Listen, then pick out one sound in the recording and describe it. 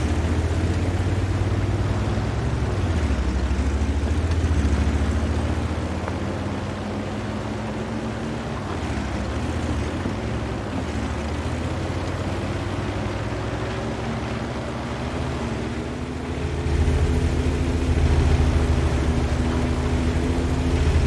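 A tank engine rumbles steadily, growing louder near the end.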